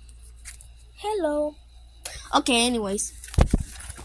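A young child speaks in a high voice close by.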